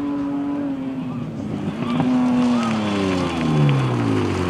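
A rally car's engine drops in pitch as the driver shifts gears.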